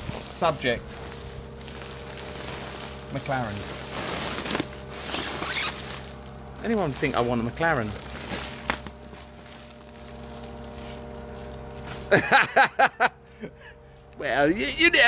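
A middle-aged man talks with animation close by, outdoors.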